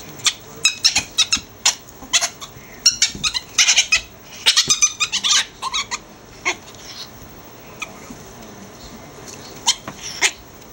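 Fabric rustles and crumples in quick bursts as small animals wrestle in it.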